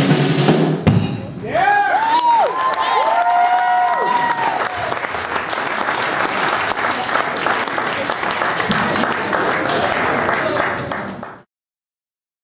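An audience claps and cheers in a room.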